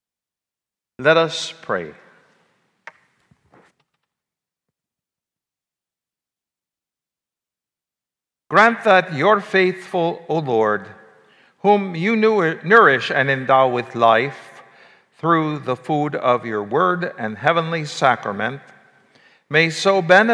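An elderly man reads aloud calmly through a microphone in an echoing room.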